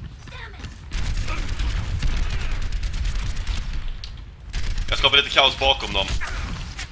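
Rapid gunfire rattles close by.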